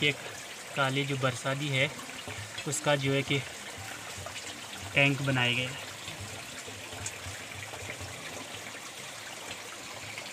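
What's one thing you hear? Water trickles from a leaking pipe onto rock.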